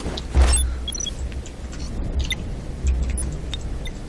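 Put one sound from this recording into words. An electronic device beeps as keys are pressed.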